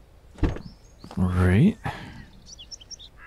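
A car door creaks open.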